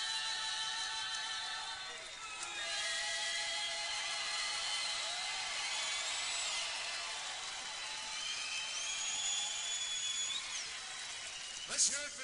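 Several women sing together into a microphone, their voices ringing through a large arena.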